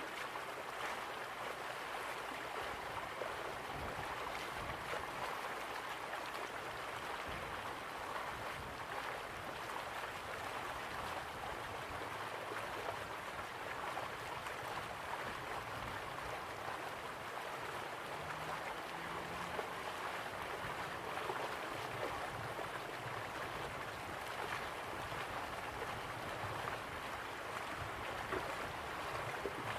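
A waterfall roars steadily.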